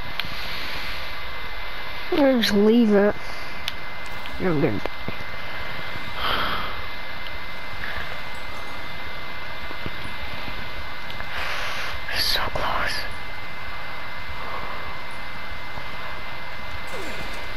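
Wind rushes loudly and steadily past.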